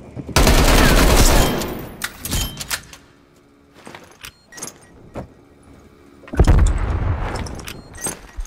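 A rifle fires a loud, booming shot that rumbles away.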